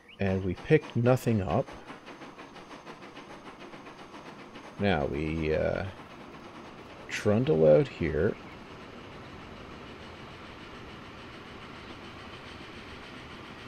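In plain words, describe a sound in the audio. Train wheels rumble steadily along the rails.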